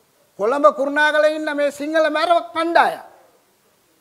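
An elderly man speaks loudly and with animation through a microphone.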